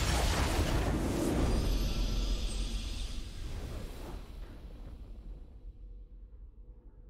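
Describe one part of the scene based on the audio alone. A triumphant game fanfare rings out and slowly fades away.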